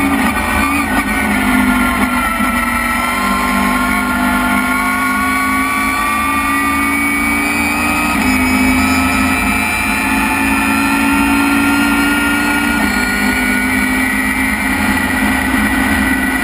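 Road and wind noise rumbles steadily through the car's body.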